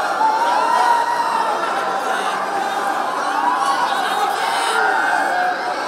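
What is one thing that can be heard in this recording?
A large crowd screams and cheers excitedly close by.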